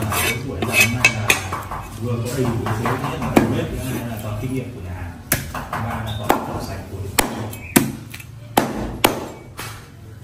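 A cleaver chops meat on a wooden board with sharp knocks.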